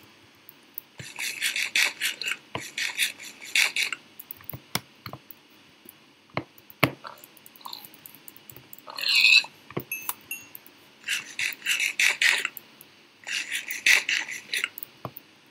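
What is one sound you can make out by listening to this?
Crunchy chewing sounds of eating come in quick bursts.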